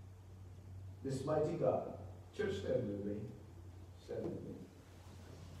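A middle-aged man speaks slowly and earnestly through a microphone in a hall with a slight echo.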